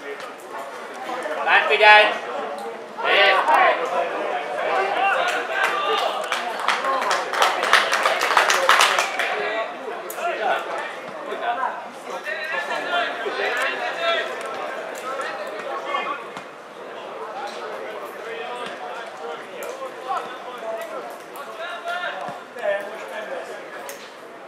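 Men shout to each other across an open playing field.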